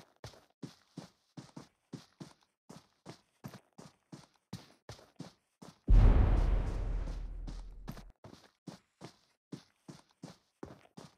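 Footsteps thud quickly and steadily.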